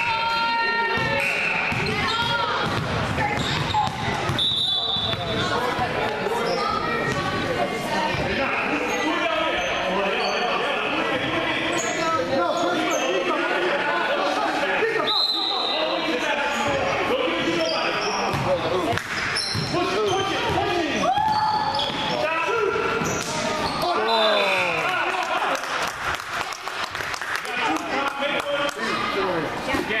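Sneakers squeak sharply on the wooden floor.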